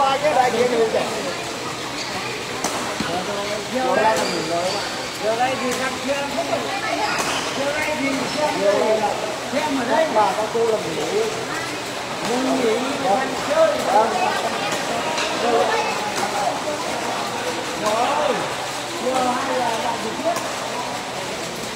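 Men in a crowd talk and call out throughout, in a large echoing hall.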